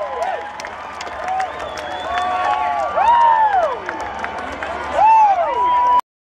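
A crowd cheers and whistles.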